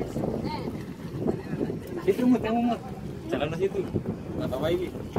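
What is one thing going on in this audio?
Water laps gently against a wooden boat.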